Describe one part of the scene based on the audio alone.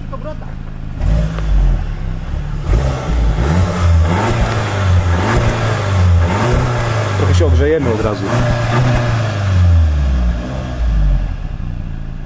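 A car engine idles and revs up and down, rumbling from the exhaust.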